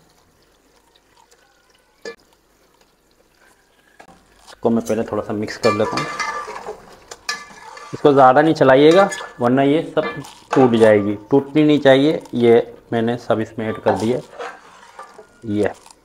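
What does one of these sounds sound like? Pieces of fish drop into a pot of simmering sauce.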